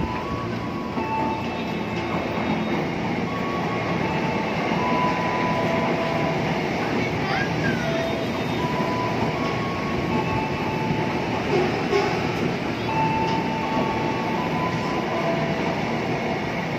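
Train motors whine in steady tones that step up and down.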